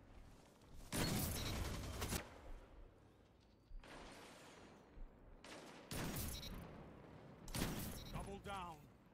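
A rifle fires loud, sharp shots that ring out.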